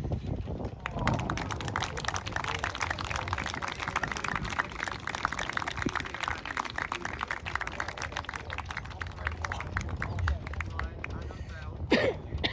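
A small crowd claps and applauds outdoors.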